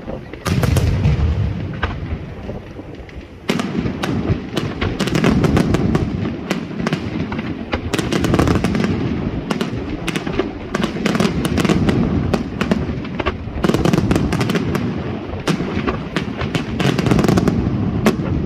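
Fireworks bang and boom outdoors, echoing in rapid bursts.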